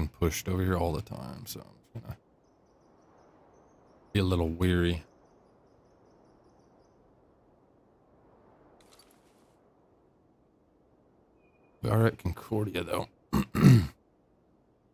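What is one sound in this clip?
A young man talks with animation close to a microphone, in short bursts.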